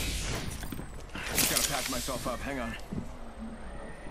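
A medical kit rattles and hisses as it is applied.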